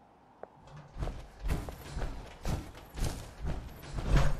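Heavy metal footsteps thud steadily on the ground.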